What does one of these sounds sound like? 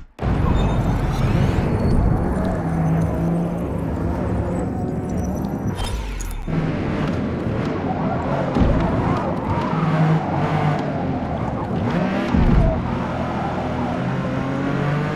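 A car engine roars and revs up and down through gear changes.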